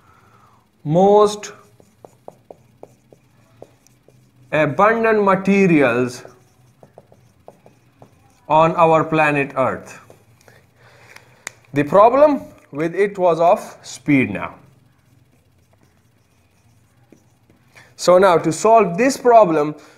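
A man speaks calmly and clearly, as if explaining a lesson, close by.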